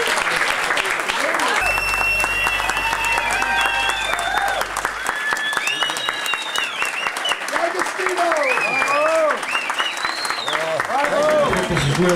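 An audience claps in a room.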